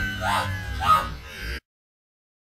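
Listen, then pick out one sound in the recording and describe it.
A young man shouts excitedly into a headset microphone.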